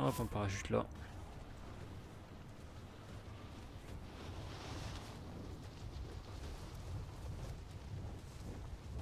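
Wind rushes during a fast freefall.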